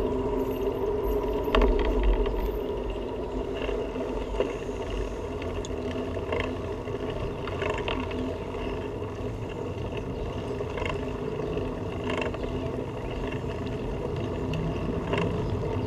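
A bicycle rolls along a pavement with a steady rumbling hum.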